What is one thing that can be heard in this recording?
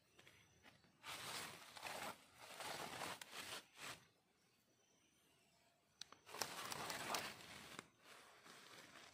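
A knife scrapes and shaves wood in short strokes.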